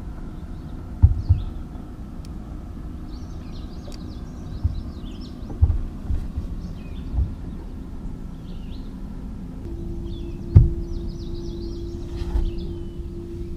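Feet thump on a boat's deck.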